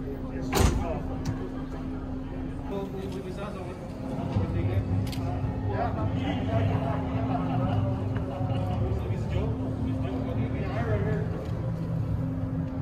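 Men and women chat in the background of a large, echoing hall.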